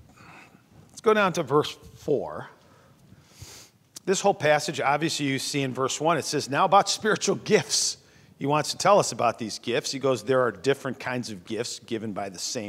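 A man speaks into a microphone in a calm preaching voice.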